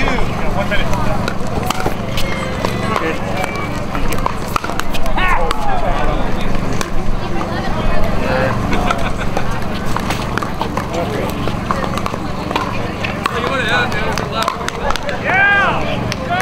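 Voices chatter in a crowd outdoors.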